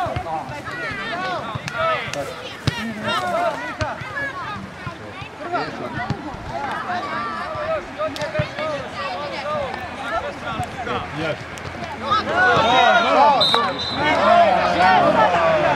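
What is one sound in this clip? Young girls shout and call out across an open field, growing louder near the end.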